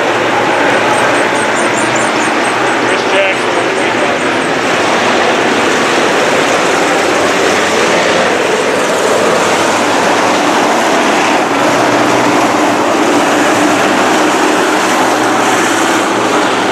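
Race car engines roar loudly as cars speed around a dirt track.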